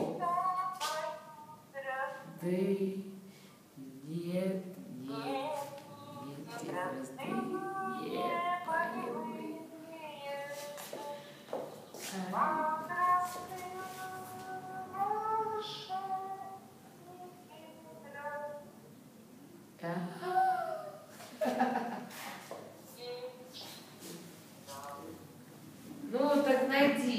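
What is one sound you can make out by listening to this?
A middle-aged woman talks animatedly close by.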